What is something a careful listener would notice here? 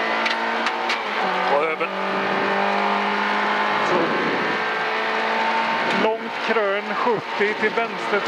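A car engine roars loudly as the car speeds up, shifting gears.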